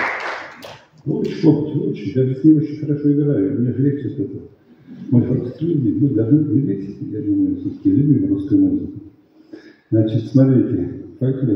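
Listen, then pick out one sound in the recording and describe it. A middle-aged man speaks calmly into a microphone, heard through loudspeakers in a large hall.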